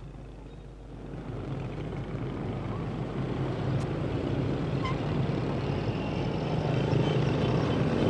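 Motorbikes pass on a dirt road.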